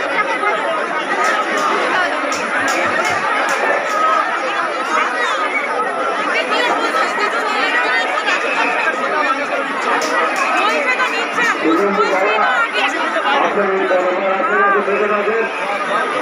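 A dense crowd of men and women chatters and shouts loudly all around, outdoors.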